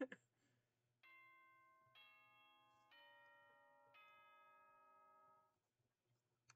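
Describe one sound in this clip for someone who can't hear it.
A chime plays a four-note ding-dong melody.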